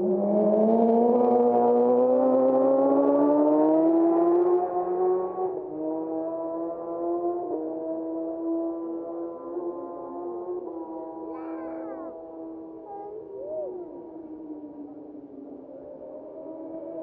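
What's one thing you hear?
A racing motorcycle engine screams past at high speed, then fades into the distance.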